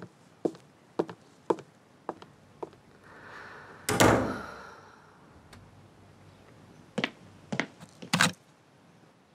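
Footsteps walk across a floor.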